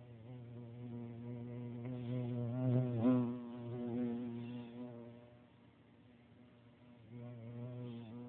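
A large bird flaps its wings close by.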